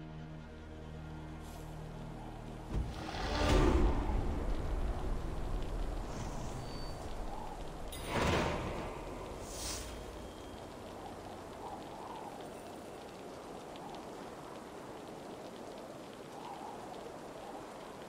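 Rain pours down steadily outdoors.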